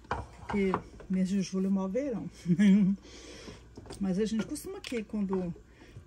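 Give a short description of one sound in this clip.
A wooden spoon stirs thick liquid in a metal pot.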